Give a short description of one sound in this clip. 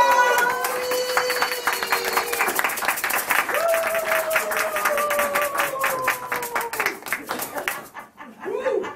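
An accordion plays a lively tune.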